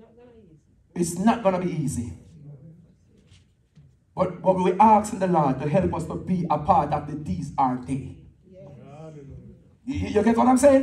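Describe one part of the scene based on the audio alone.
A man preaches with animation through a loudspeaker in a large echoing hall.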